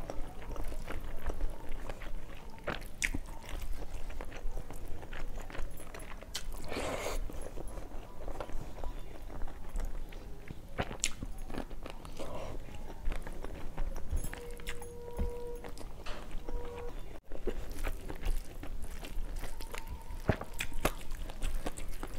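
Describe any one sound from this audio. A woman's fingers squelch and mix rice and curry on a metal plate, close to a lapel microphone.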